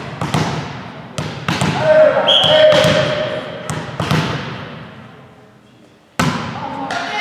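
A volleyball thuds off hands and echoes through a large hall.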